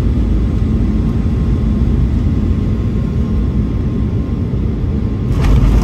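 Aircraft wheels rumble along a runway.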